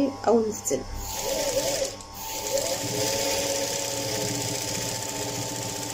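A sewing machine runs with a steady whir.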